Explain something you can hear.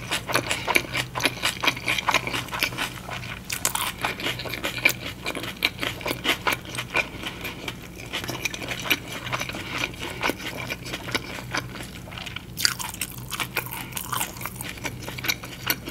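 A young woman whispers softly, very close to a microphone.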